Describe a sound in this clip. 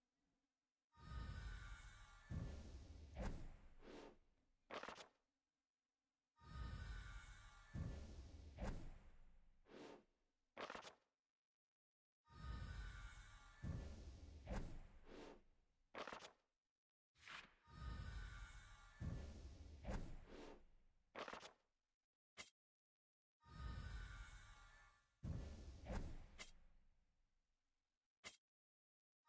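A book's paper pages flip over.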